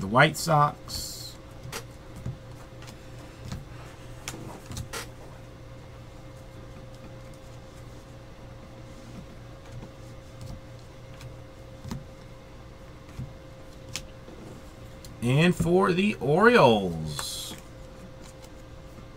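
Trading cards rustle and slide as they are shuffled by hand.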